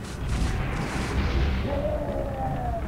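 A fiery magical blast whooshes and crackles.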